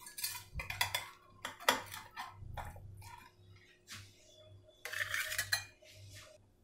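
A metal spatula scrapes and taps against a glass dish.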